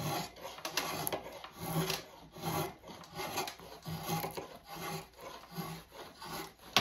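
A drawknife scrapes and shaves wood in quick, repeated strokes.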